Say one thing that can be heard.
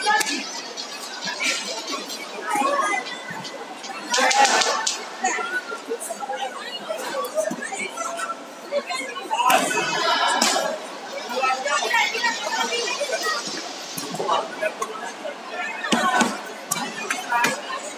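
Spectators chatter and shout throughout a large echoing hall.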